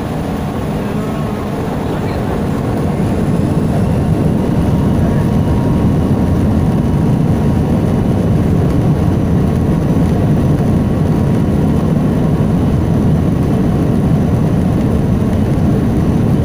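Aircraft wheels rumble over a runway.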